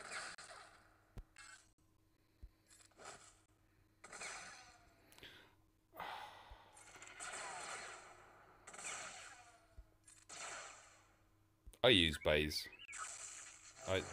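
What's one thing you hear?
Laser blasters fire in quick bursts of zapping shots.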